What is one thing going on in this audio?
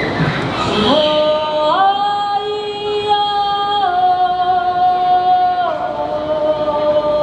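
Performers on stage sing long, steady notes through loudspeakers.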